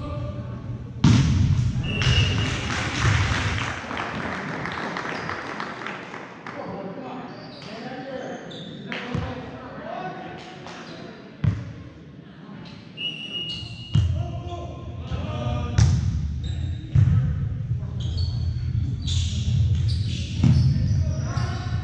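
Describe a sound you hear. A volleyball is struck with sharp smacks that echo through a large hall.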